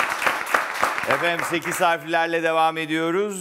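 A man speaks into a microphone in a lively, drawn-out voice.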